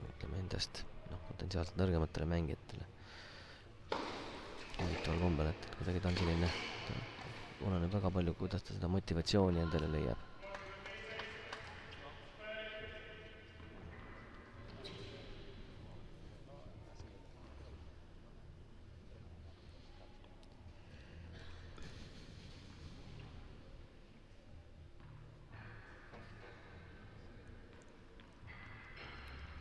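A tennis ball bounces on a hard court.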